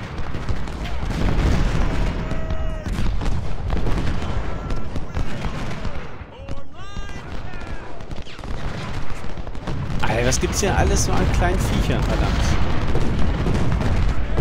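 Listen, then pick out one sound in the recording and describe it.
Muskets crackle and cannons boom in a battle.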